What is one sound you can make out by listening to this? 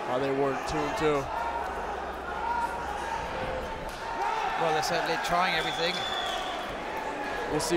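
Two wrestlers grapple and scuffle on a padded mat.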